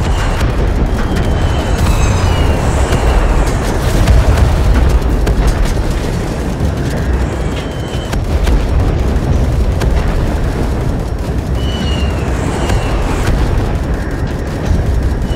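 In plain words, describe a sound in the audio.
Explosions boom repeatedly.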